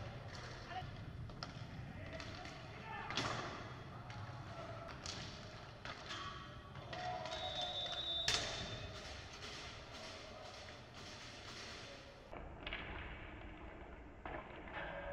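Hockey sticks clack against a ball and each other in a large echoing hall.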